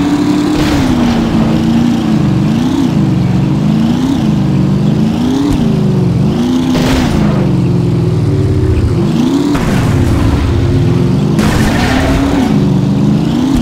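Tyres skid on a rough road.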